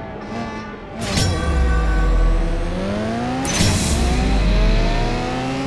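A car engine roars as the car accelerates hard and shifts gears.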